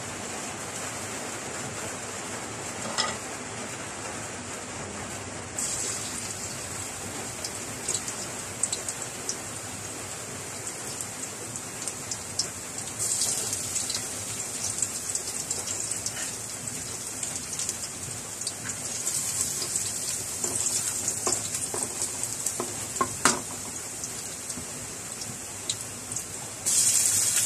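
Oil sizzles in a hot pan.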